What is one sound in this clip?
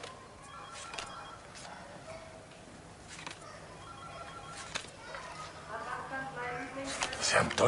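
Playing cards snap softly onto a table.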